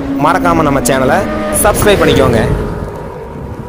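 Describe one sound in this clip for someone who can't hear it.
A motorcycle engine revs loudly.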